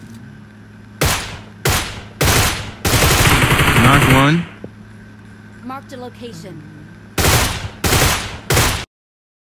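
Rifle shots crack sharply, one after another.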